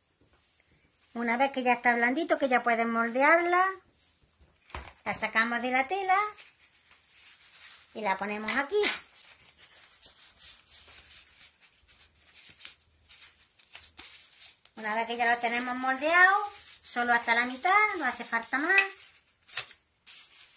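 Fabric rustles softly as hands handle and smooth it.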